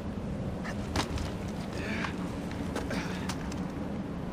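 Footsteps crunch on snow and ice.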